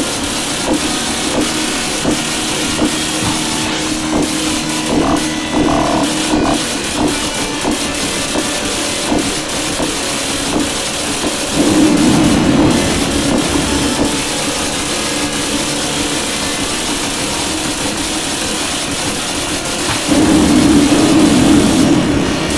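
Rapid gunfire and laser shots blast repeatedly in a video game.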